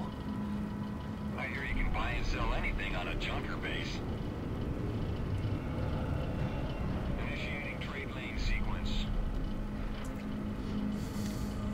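A spacecraft engine hums with a steady low rumble.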